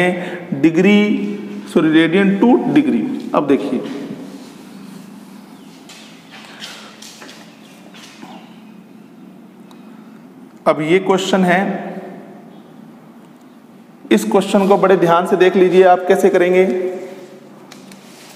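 A man speaks calmly nearby, as if explaining.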